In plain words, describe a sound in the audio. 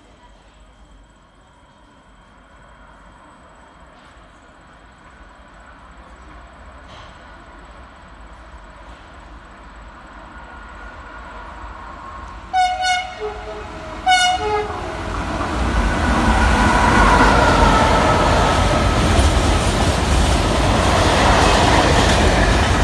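A train approaches and rumbles loudly past, growing louder.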